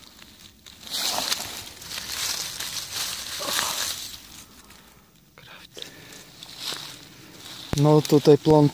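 Dry leaves and grass rustle and crunch close by.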